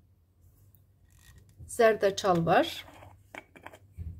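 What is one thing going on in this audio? A metal lid twists off a glass jar.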